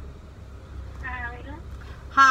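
A young woman makes a brief sound with her voice close by.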